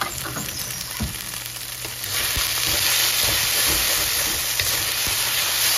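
A wooden spatula scrapes and taps against a metal pan.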